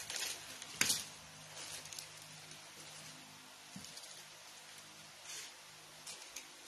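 A plastic bag crinkles and rustles close by.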